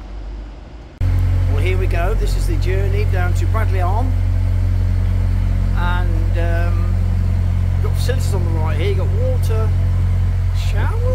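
A boat engine chugs with a steady low drone.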